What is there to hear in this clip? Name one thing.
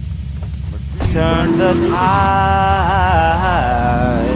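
Music plays from a car radio.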